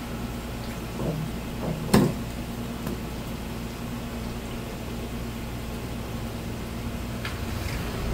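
A knife chops through fish on a cutting board with sharp knocks.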